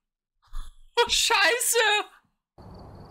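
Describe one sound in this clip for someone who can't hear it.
A young woman exclaims loudly and excitedly into a microphone.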